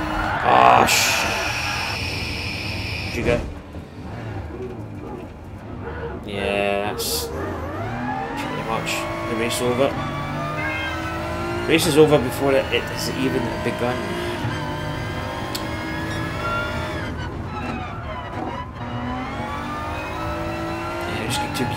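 A racing car engine revs and roars, rising and falling in pitch as the gears change.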